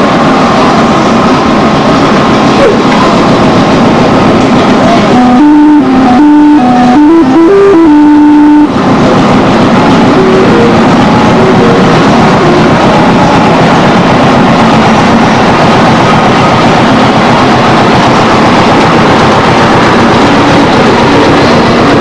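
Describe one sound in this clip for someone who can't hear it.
A fairground ride rumbles and clanks as it turns.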